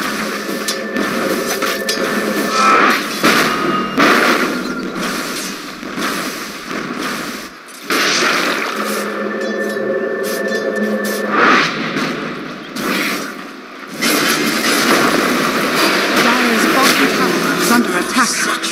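Fantasy battle sound effects clash, whoosh and crackle.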